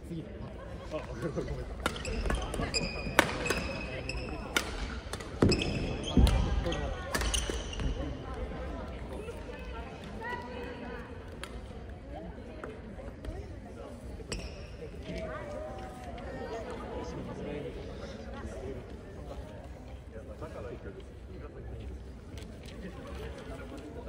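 Children talk and call out nearby.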